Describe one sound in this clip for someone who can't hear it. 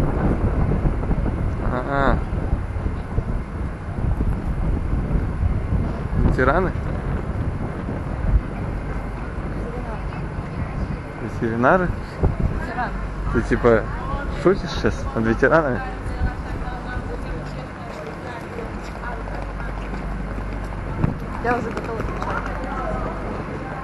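Wind buffets and rumbles across the microphone outdoors.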